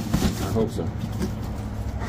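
Packing tape is slit open on a cardboard box.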